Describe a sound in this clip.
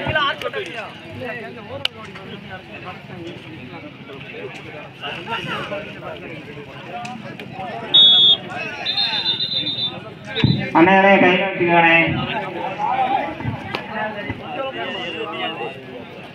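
A crowd of young men chatter and shout outdoors.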